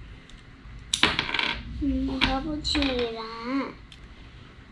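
A young girl speaks in a high, sing-song voice close by.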